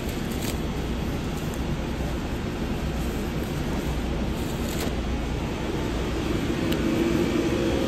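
A plastic glove stretches and snaps onto a hand.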